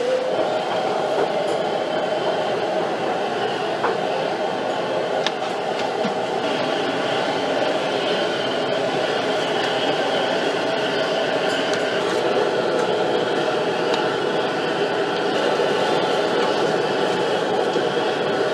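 Liquid boils and bubbles vigorously in a wok.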